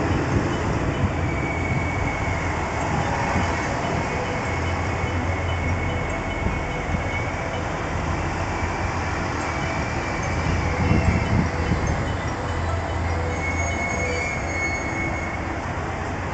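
Train brakes squeal with a high steady whine.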